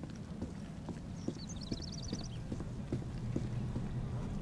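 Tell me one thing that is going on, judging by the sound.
Footsteps thud slowly on stone steps.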